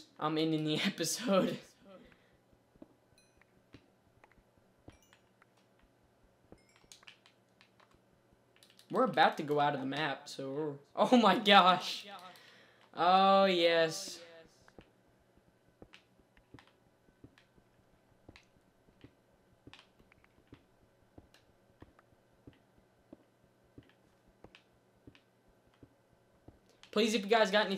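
A teenage boy talks with animation into a close microphone.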